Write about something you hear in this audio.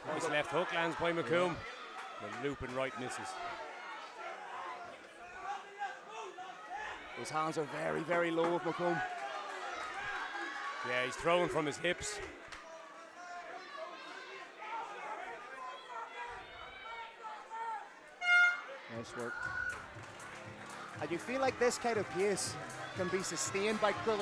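A crowd shouts and cheers loudly.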